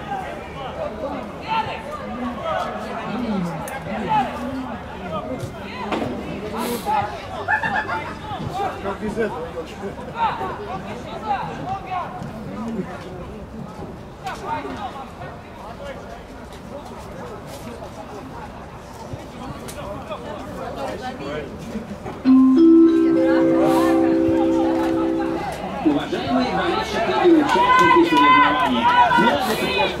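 Young men talk and call out over each other outdoors.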